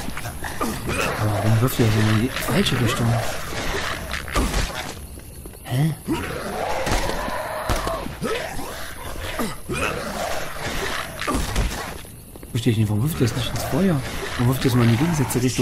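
Monsters snarl and growl.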